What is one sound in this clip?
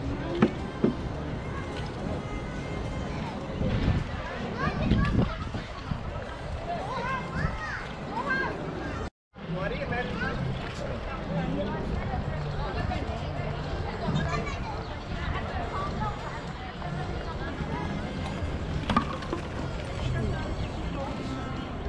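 A crowd of men, women and children chatters outdoors nearby.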